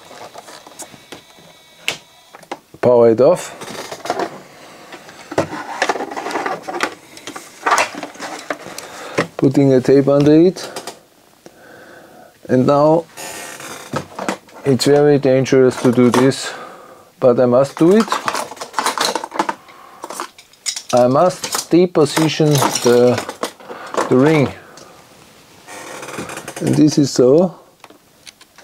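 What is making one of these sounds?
Small mechanical parts click and rattle as hands handle them.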